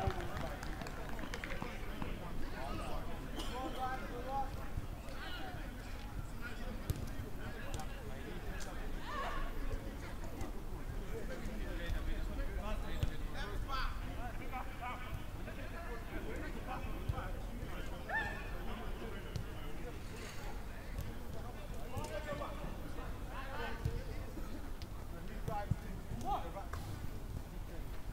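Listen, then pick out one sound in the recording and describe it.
A football thuds when kicked.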